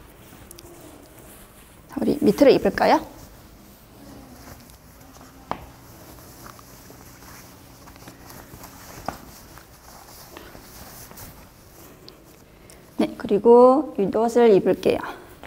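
Fabric rustles as clothes are handled.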